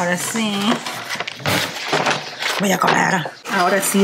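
Cardboard rustles as a cake box is closed.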